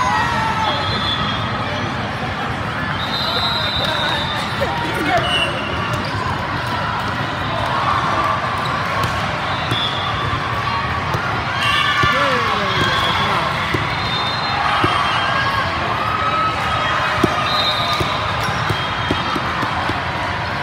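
A crowd chatters throughout a large echoing hall.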